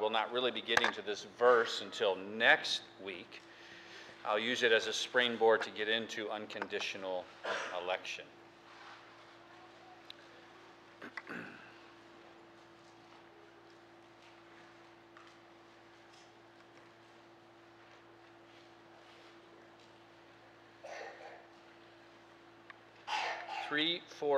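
A middle-aged man speaks with emphasis through a microphone in a large room, pausing at length.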